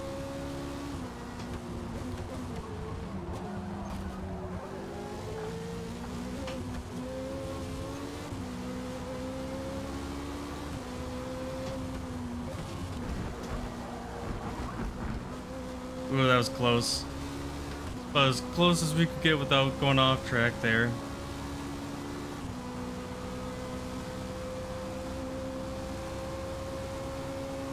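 A racing car engine drones steadily, its pitch rising and falling with the gear shifts.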